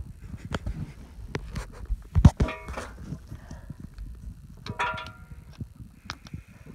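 Gravel crunches underfoot close by.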